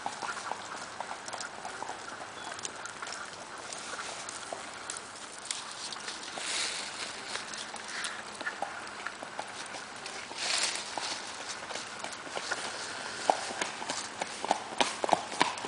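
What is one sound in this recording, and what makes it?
Hooves of a gaited horse clop on a gravel road.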